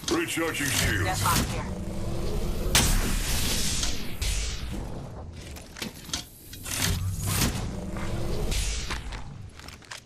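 An electronic charging device whirs and hums, rising in pitch.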